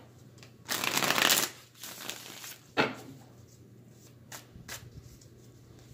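Playing cards riffle and shuffle close by.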